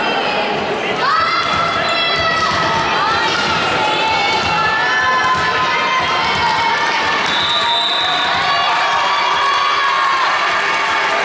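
A crowd of spectators chants loudly.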